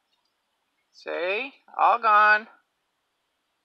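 A goat bleats loudly twice.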